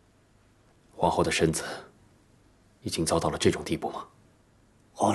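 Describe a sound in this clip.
A man asks a question in a raised, worried voice.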